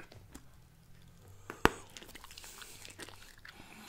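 A man pops a bubble gum bubble close to a microphone.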